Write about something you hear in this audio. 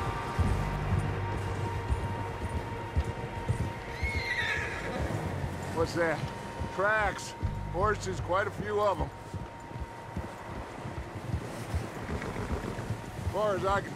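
Horse hooves crunch steadily through deep snow.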